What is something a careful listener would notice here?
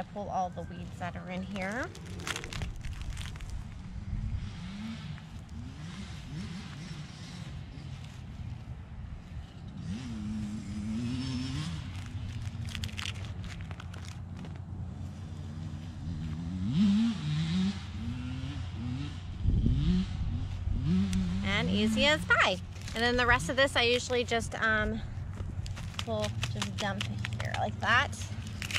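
Hands rustle a plastic seedling tray and soil.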